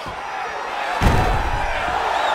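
A body slams onto the mat with a heavy thud.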